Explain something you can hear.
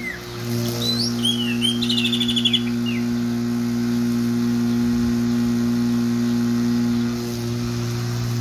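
A string trimmer motor whines steadily nearby.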